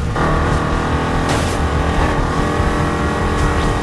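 Tyres screech as a car drifts through a turn.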